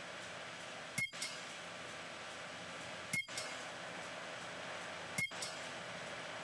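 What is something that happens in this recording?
A video game menu ticks as a selection changes.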